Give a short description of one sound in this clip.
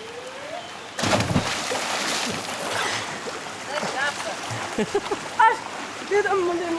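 Water churns and bubbles after a splash.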